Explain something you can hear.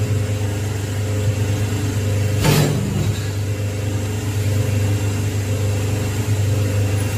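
An electric machine hums steadily.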